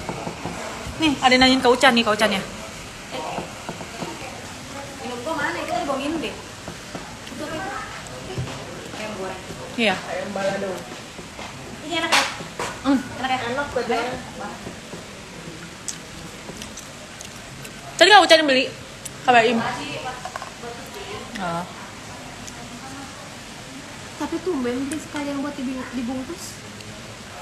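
A young woman talks casually and close up.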